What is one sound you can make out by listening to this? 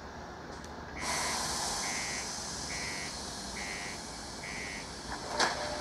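An alarm beeps repeatedly in short, even pulses.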